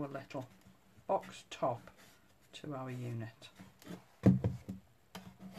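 Hands shift a light wooden box with soft knocks.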